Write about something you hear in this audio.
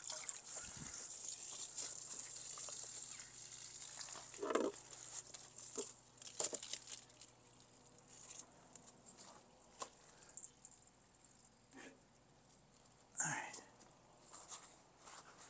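A garden hose rustles and scrapes as it is coiled up.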